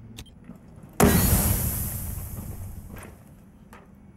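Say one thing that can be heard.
A smoke grenade bursts with a loud hiss that slowly fades.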